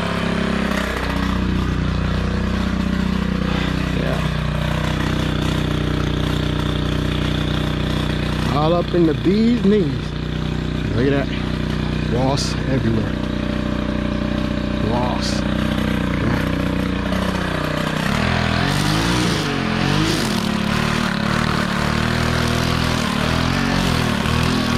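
A string trimmer engine drones steadily close by, revving up and down.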